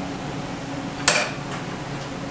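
A metal tool clinks against an engine.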